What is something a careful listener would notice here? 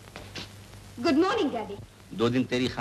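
A woman cries out with distress, close by.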